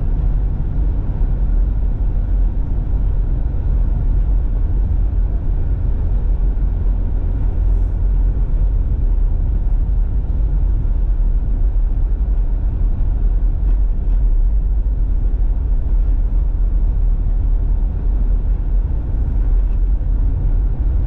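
Tyres crunch and rumble over packed snow.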